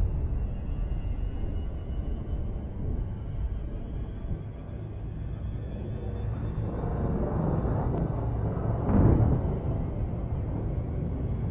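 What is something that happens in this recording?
A deep engine rumble hums steadily, swelling louder near the end.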